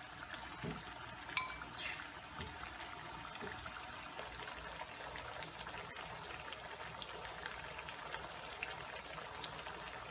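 Oil sizzles and crackles steadily in a frying pan.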